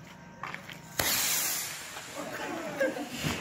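A firework fountain hisses and sprays sparks.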